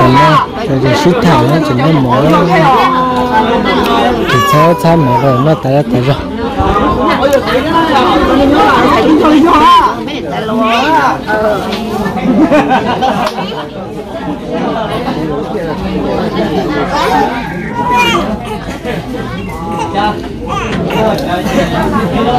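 A crowd of men and women chatters outdoors close by.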